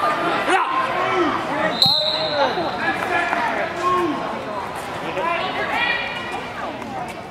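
A crowd of spectators cheers and shouts loudly in a large echoing hall.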